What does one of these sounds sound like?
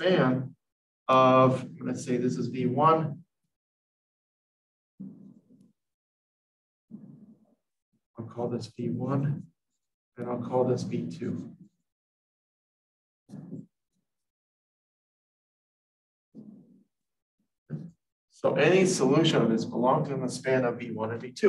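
A man explains calmly and clearly, close by.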